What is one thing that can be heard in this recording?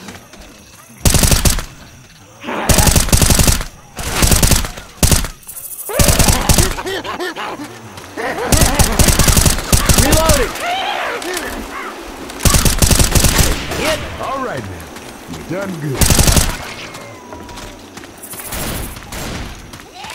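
An automatic rifle fires in loud, rapid bursts.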